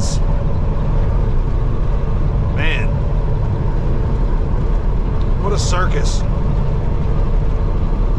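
Tyres roll on the road with a steady hum.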